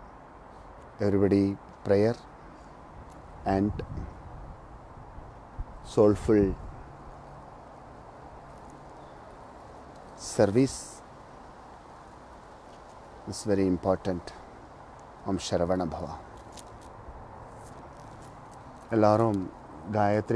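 A man speaks slowly and calmly into a nearby microphone, with long pauses.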